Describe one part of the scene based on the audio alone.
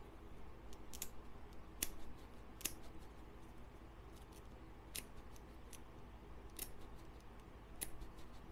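A plastic cord clicks sharply now and then as it is handled.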